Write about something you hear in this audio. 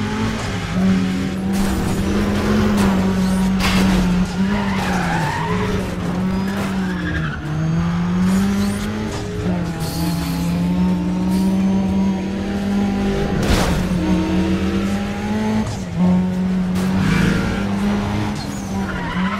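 A car engine roars steadily at high revs, shifting pitch as the car speeds up and slows.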